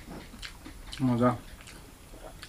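A young man murmurs briefly with his mouth full.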